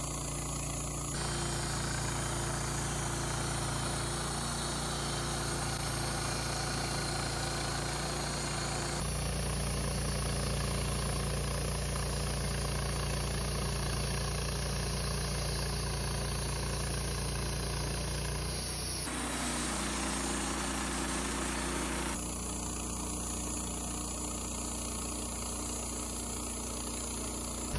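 A petrol engine runs under load on a portable band sawmill.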